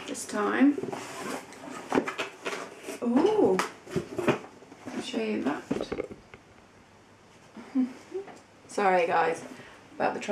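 A cardboard box rattles as it is handled.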